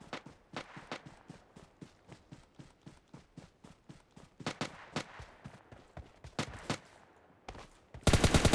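Footsteps thud quickly across the ground.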